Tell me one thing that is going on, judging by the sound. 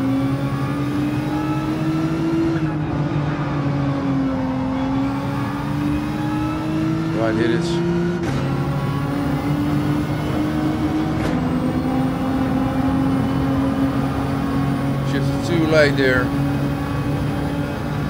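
A racing car engine roars steadily, shifting gears as it speeds up.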